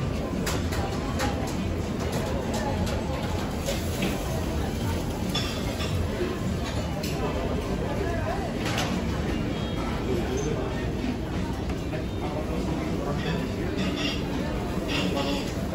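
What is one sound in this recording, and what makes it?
Many men and women chatter all around in a busy room.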